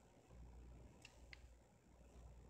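A game piece clicks as it is placed.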